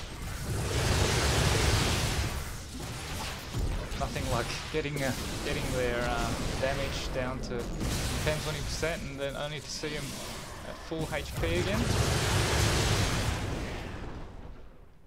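Game battle effects rumble and crackle with blasts and energy bursts.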